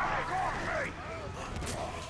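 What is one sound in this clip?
Fire bursts with a roar.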